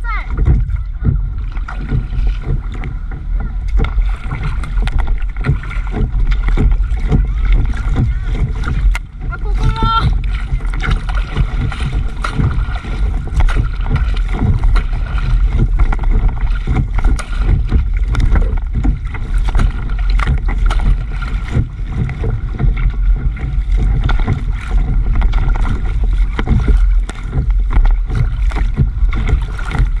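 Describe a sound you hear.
Water splashes and gurgles against the side of a paddle board as it glides along.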